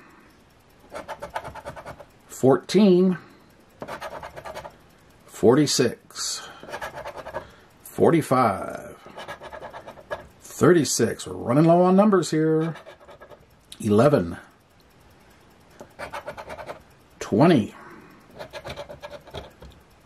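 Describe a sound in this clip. A plastic scraper scratches the coating off a scratch-off ticket in short bursts.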